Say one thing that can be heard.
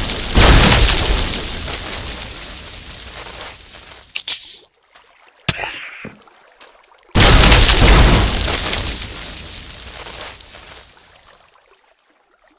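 Loud blasts boom and slowly rumble away.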